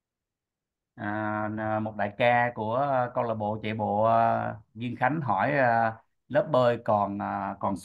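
A woman speaks calmly and clearly through an online call.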